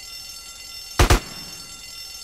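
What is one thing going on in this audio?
A gun fires two loud shots close by.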